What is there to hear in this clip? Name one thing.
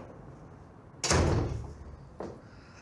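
A door shuts with a heavy thud.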